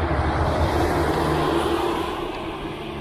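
A car drives past close by with a rushing sound that fades.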